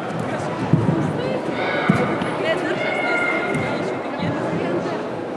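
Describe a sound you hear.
Bare feet stamp and thud on a mat in a large echoing hall.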